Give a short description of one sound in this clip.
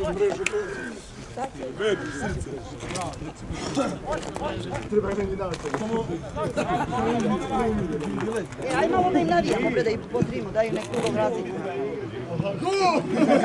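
A man talks close by, outdoors.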